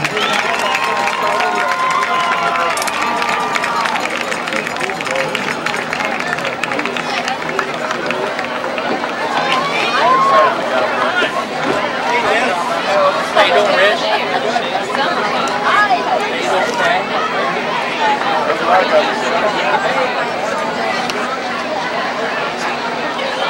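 A large outdoor crowd murmurs and cheers in the background.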